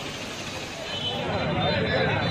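A crowd of men and women talk over one another close by.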